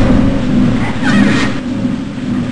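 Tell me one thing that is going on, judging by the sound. A metal door creaks open.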